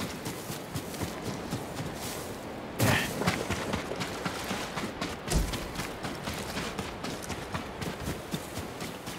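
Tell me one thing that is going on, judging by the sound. A horse gallops, its hooves pounding in a quick rhythm.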